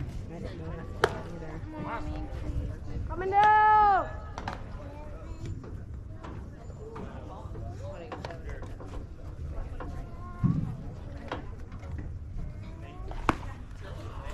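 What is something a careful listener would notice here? A baseball pops sharply into a catcher's mitt.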